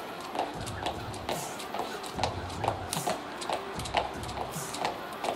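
Shoes tap on a hard floor as a woman steps in rhythm.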